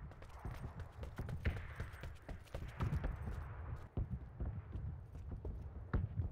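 Footsteps thud quickly across hollow wooden floorboards and stairs.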